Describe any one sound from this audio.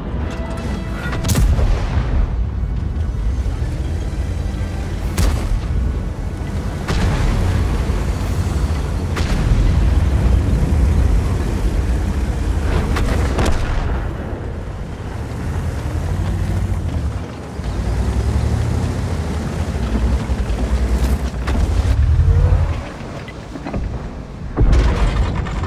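A heavy tank engine rumbles and roars steadily.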